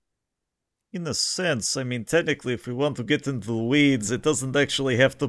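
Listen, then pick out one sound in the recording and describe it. A second man talks with animation through an online call.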